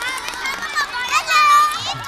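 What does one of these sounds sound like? A young girl laughs and shouts close by.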